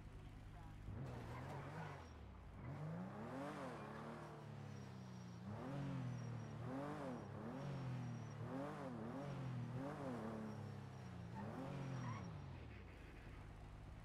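A car engine revs and accelerates in repeated bursts, then dies down.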